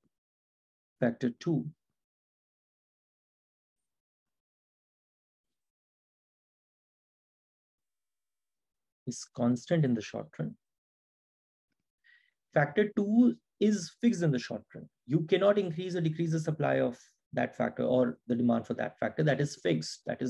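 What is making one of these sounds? A man talks calmly and closely into a microphone, pausing at times.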